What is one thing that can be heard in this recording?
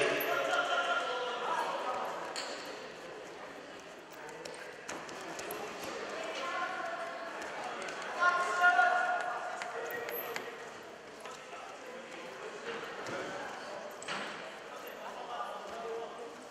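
Spectators shout and call out in a large echoing hall.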